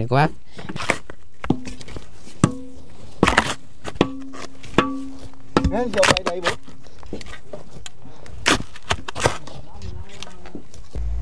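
Hoes strike and scrape the hard earth.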